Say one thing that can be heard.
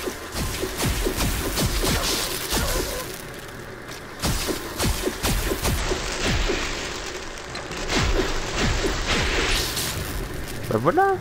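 A weapon crackles and bursts with loud electric blasts.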